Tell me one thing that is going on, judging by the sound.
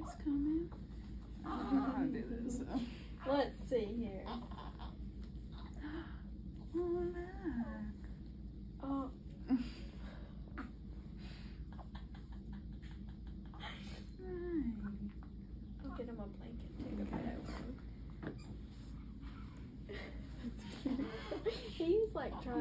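A young woman talks softly and happily nearby.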